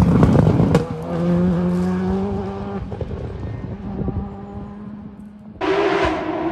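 A rally car engine drones in the distance and fades.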